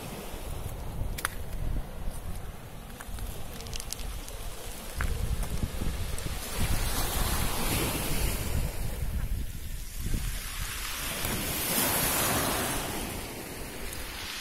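Small waves wash up on the shore and break with a hiss.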